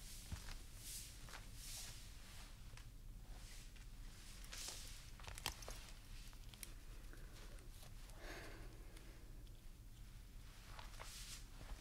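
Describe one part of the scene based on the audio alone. Stiff layered fabric rustles with movement.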